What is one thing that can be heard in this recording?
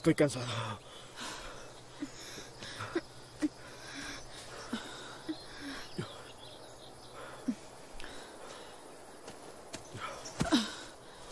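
A woman breathes heavily and gasps.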